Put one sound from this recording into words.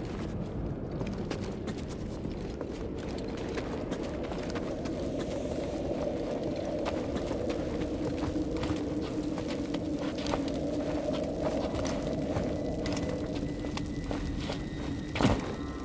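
Footsteps crunch over rocky ground at a steady pace.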